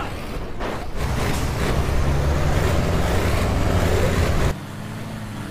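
A heavy truck engine roars loudly.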